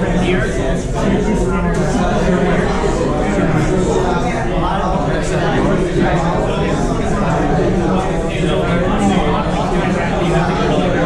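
Many men talk at once, a steady murmur of voices.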